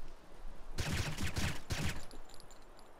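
A gun fires a quick burst of loud shots.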